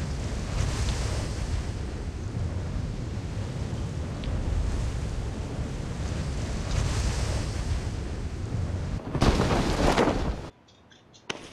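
Wind rushes loudly during a parachute descent.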